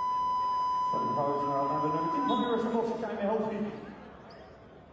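An arena horn blares loudly.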